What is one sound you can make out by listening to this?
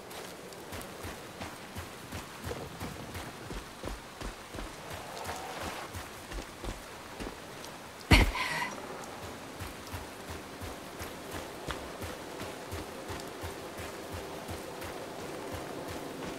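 Footsteps crunch steadily over damp ground and undergrowth.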